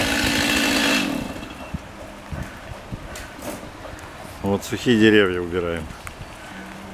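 A chainsaw engine revs in short bursts.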